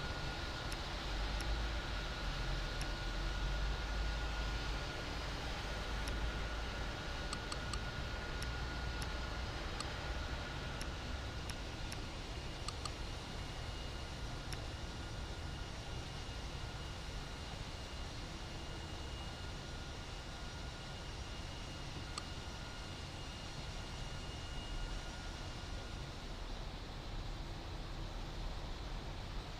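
Jet engines hum and roar steadily.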